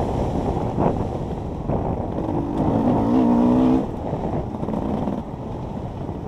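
Tyres rumble and bump over rough dirt.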